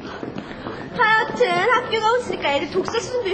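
Young girls chatter and laugh close by.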